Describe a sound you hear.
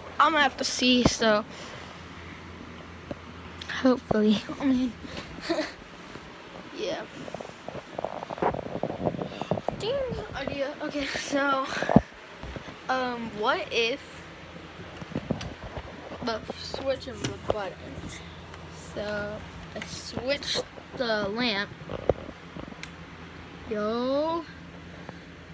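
A boy talks loudly and excitedly, very close.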